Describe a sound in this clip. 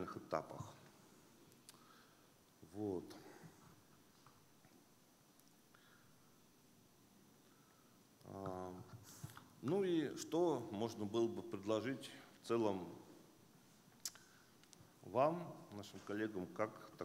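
A man speaks calmly through a microphone and loudspeakers in a large echoing hall, with long pauses.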